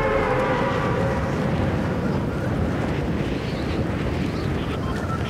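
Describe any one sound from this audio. Wind rushes loudly and steadily during a fall through the air.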